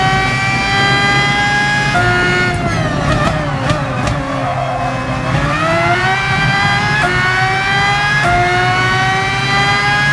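A racing car engine screams at high revs, dropping in pitch under braking and rising again through the gears.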